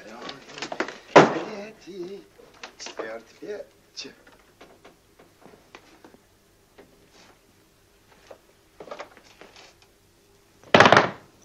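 Objects rattle and knock inside a wardrobe.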